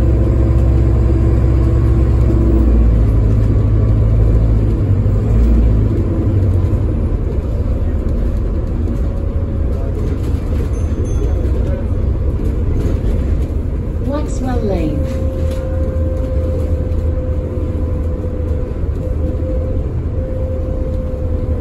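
Tyres roll on the road beneath a moving bus.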